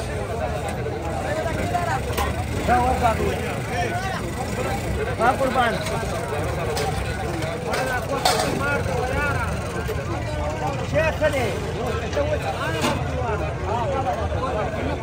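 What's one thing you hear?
A crowd of men chatter outdoors all around.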